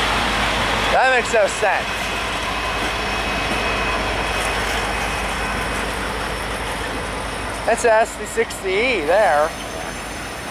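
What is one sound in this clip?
Train wheels squeal sharply on the rails a few times.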